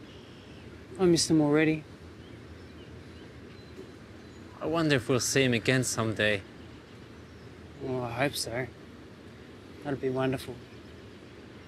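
A young man speaks calmly nearby, in short phrases.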